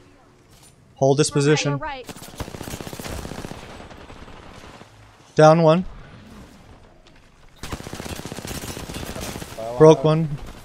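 Rapid gunfire crackles.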